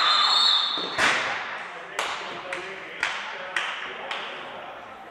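A ball bounces repeatedly on a hard floor.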